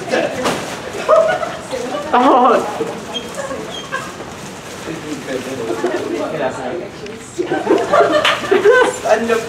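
Young people chatter and call out nearby.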